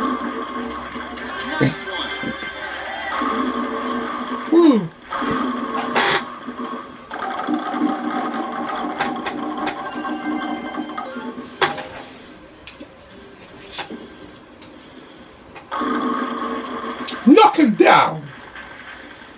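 Bowling pins crash and clatter, heard through a television speaker.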